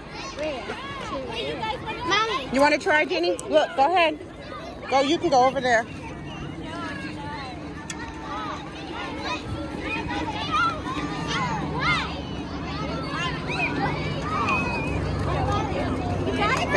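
Children shout and chatter nearby, outdoors.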